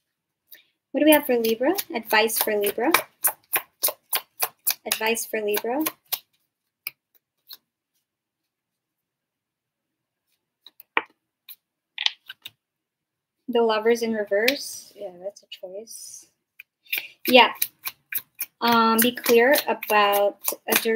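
Cards riffle and snap as a young woman shuffles a deck.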